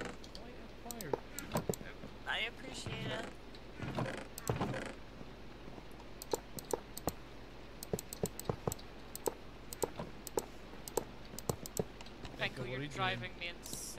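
Short soft clicks sound again and again as blocks are placed.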